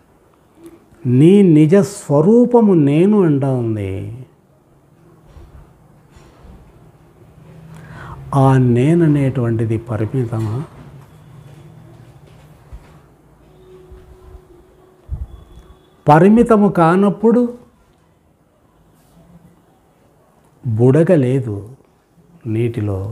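An elderly man speaks calmly and with expression, close to a microphone, in bursts with pauses.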